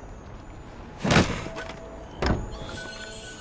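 Heavy thumps sound as a figure lands after climbing and jumping.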